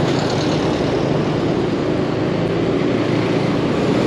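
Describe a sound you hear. A bus drives past close by.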